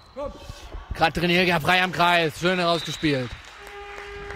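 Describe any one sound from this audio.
Spectators cheer and shout loudly.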